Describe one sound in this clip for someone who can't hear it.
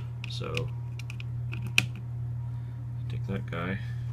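A patch cable clicks into a socket.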